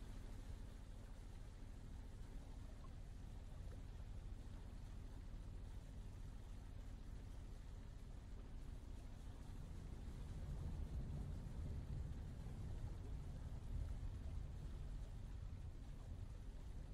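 Water churns and splashes against a boat's hull.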